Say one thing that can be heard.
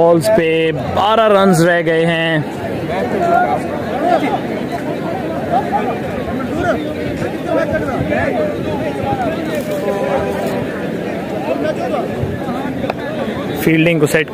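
Many men chatter and call out across an open field.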